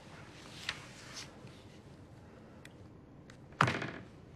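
A mobile phone's keys click softly.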